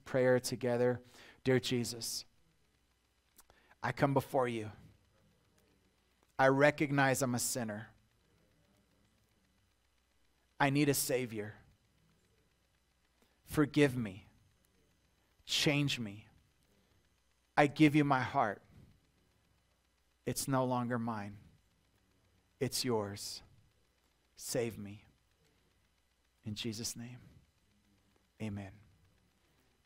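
A middle-aged man speaks earnestly through a microphone, in short phrases with long pauses.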